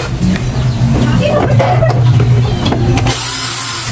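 An electric screwdriver whirs.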